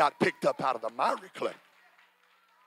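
A man speaks loudly with animation through a microphone in a large echoing hall.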